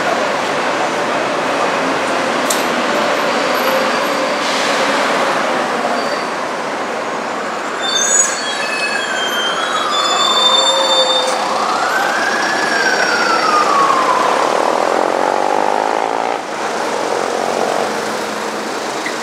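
Traffic rumbles steadily along a busy city street outdoors.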